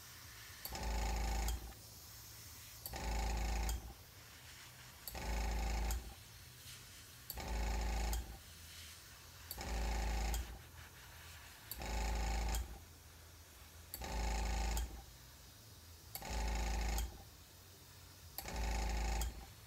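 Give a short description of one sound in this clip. A small rotary tool whirs in short, regular bursts.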